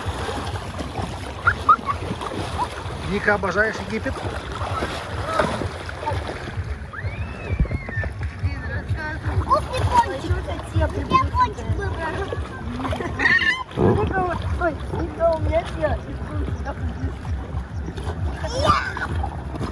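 Young girls talk and laugh close by, outdoors.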